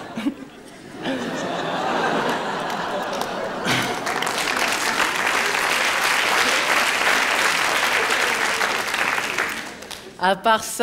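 A large audience laughs loudly.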